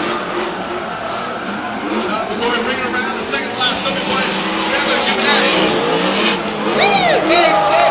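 Tyres squeal loudly as cars slide.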